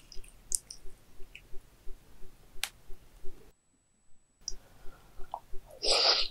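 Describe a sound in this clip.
A woman chews food loudly and wetly close to a microphone.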